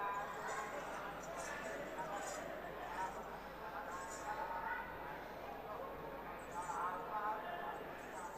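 A large crowd murmurs and chatters.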